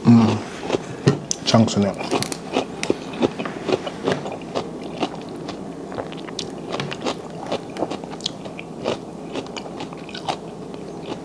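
Crab shells crack and snap as hands break them apart.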